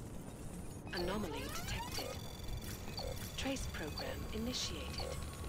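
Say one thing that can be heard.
Electronic chirps and glides sound from a game.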